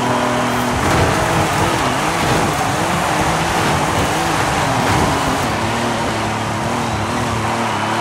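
A car body scrapes along a wall.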